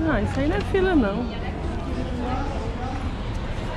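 Passers-by talk in a street outdoors.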